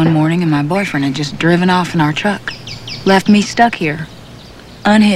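A woman speaks calmly and earnestly nearby.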